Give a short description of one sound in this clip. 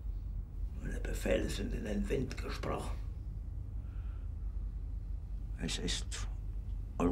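An older man speaks quietly and wearily.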